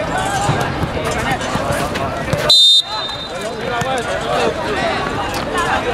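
A crowd of spectators shouts and chatters nearby.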